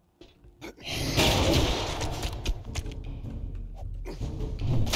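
A zombie snarls and growls close by.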